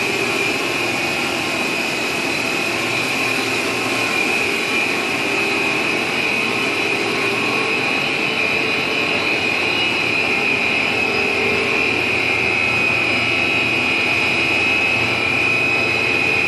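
Factory machinery hums and whirs steadily with a high whine.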